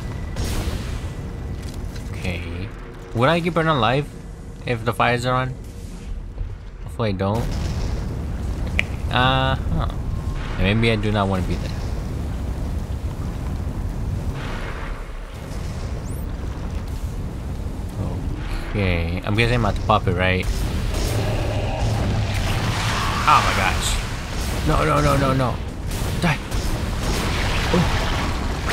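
Flames roar steadily.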